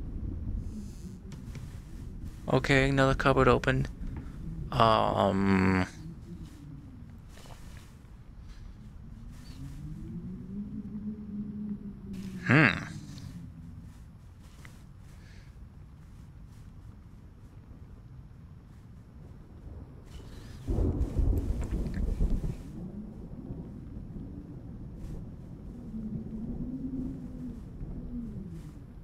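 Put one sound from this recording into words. A young man speaks quietly and thoughtfully into a headset microphone.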